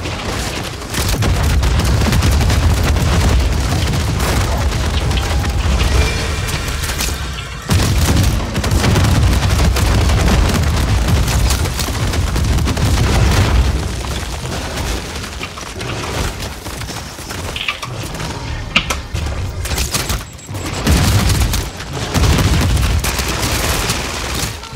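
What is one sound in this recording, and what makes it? Loud explosions boom and rumble close by.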